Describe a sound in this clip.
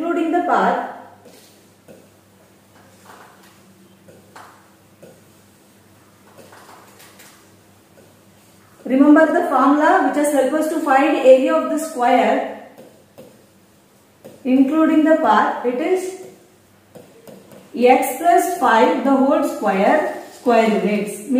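A woman explains calmly and clearly, close by.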